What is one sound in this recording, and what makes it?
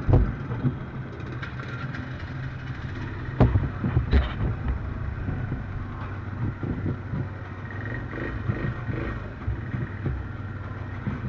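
Quad bike engines idle and rumble close by.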